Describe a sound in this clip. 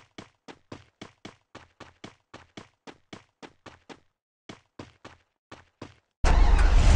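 Footsteps thud quickly on a dirt road.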